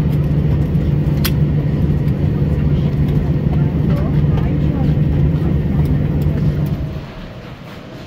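An aircraft's engine hums with a steady low drone outdoors.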